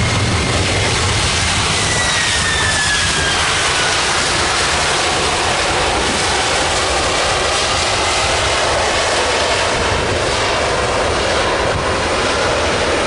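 A jet airliner's engines roar loudly as it rolls down the runway.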